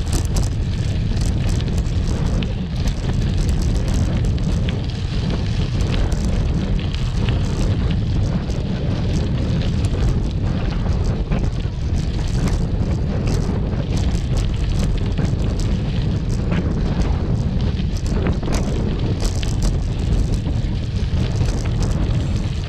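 Wind buffets loudly and steadily outdoors.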